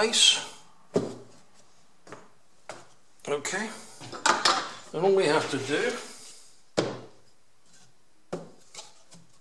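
Small hard pieces knock down onto a wooden board.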